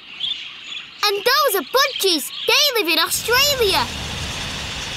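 Parakeets chirp loudly close by in quick, rising and falling calls.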